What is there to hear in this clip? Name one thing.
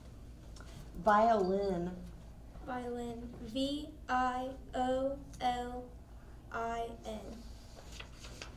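A young girl sings into a microphone.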